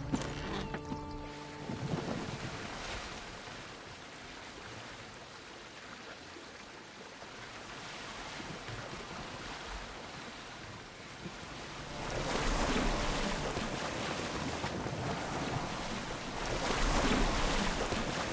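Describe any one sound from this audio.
Oars splash in water as a boat is rowed.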